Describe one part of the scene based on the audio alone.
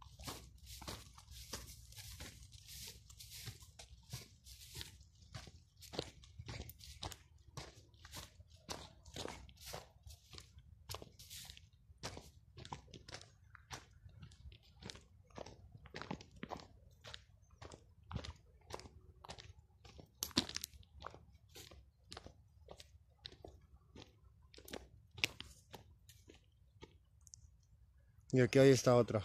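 Footsteps crunch steadily through dry grass and brush.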